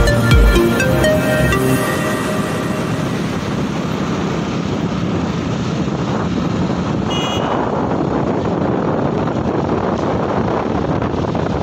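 Wind rushes steadily past while riding along a road outdoors.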